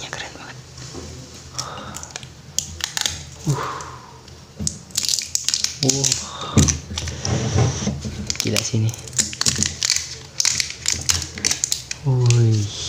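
Foil crinkles and tears as it is peeled from a bottle neck.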